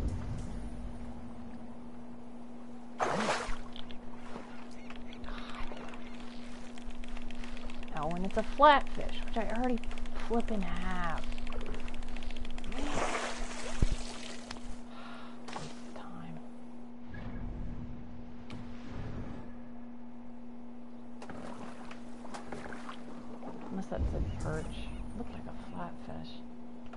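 Water laps gently against a wooden boat.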